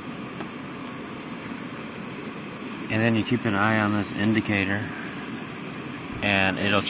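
A camping stove burner hisses steadily.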